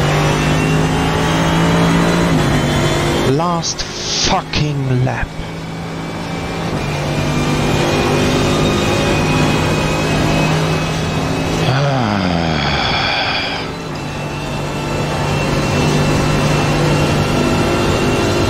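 A racing car engine roars at high revs, rising in pitch and dropping briefly at each gear change.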